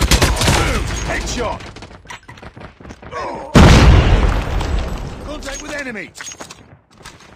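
Gunshots fire in rapid bursts.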